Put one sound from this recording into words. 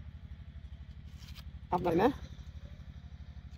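A blade shaves the skin off a pineapple.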